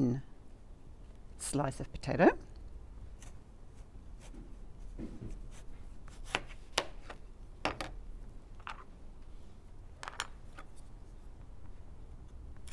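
A knife cuts through a raw potato.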